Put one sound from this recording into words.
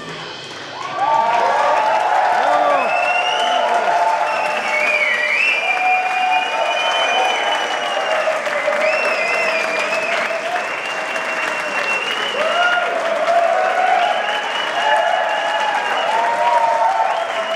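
An electric organ plays sustained, wavering notes.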